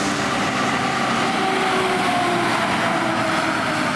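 A heavy truck drives past close by.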